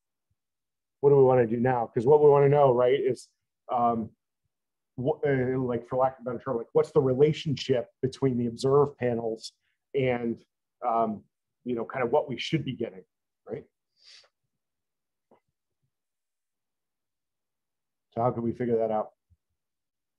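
A man lectures calmly into a microphone, in pauses.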